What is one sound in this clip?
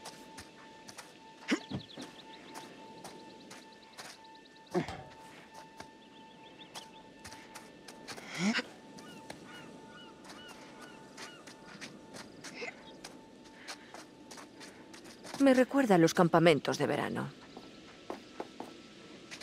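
Footsteps crunch steadily on dry ground and leaves.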